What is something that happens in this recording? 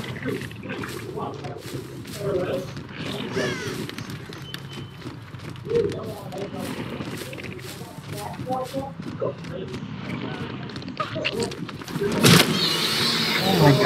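Heavy footsteps rustle through tall grass.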